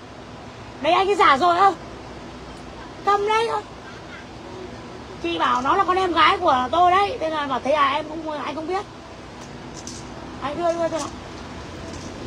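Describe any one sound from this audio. A woman speaks with animation close to a phone microphone.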